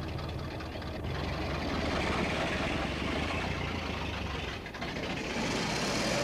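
An old car engine runs with a low rumble.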